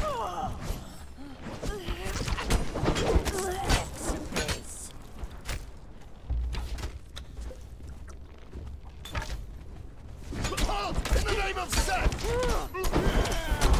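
Swords clash and strike in a close fight.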